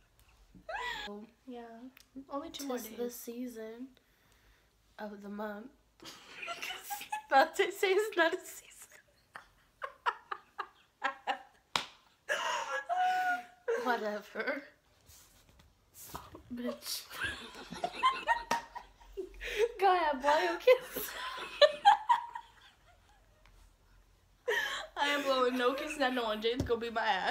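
Two young women laugh loudly together.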